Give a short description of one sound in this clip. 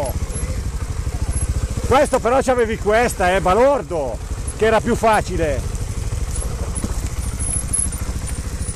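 A dirt bike engine idles and putters steadily close by.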